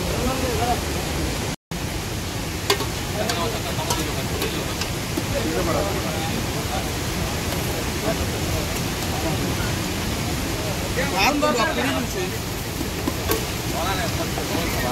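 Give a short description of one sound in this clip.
Young men talk casually nearby.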